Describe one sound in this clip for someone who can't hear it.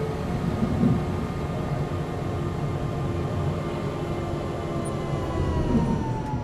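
A tram's electric motor hums and rumbles steadily as it rolls along the rails.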